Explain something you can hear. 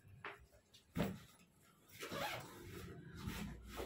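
A bag's zipper rasps open.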